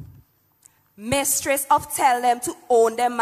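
A young woman speaks clearly into a microphone over loudspeakers.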